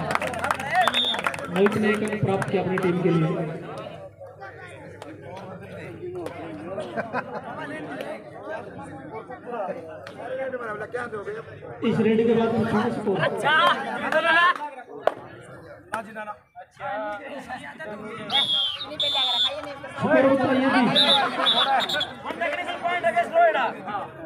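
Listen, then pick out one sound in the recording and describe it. Young men call out loudly close by.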